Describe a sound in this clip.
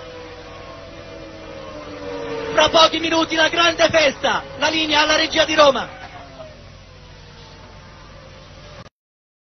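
A racing car engine screams at high revs as it speeds past.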